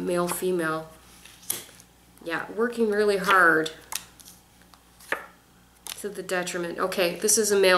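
Playing cards slide and tap onto a table.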